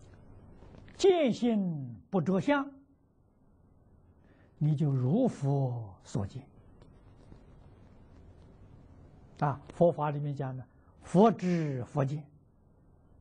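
An elderly man speaks calmly and slowly into a microphone, in short phrases with pauses.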